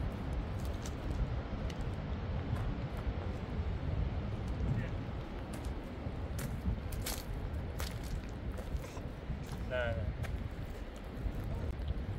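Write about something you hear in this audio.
Loose stones crunch under a man's shoes and knees as he crouches.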